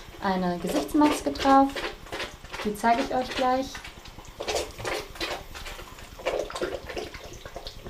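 A young woman talks close up with animation, in a small echoing room.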